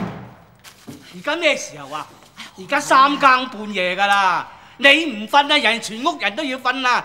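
An elderly man shouts angrily up close.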